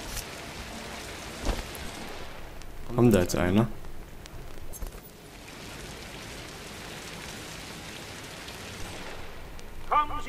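Rain falls steadily with a soft hiss.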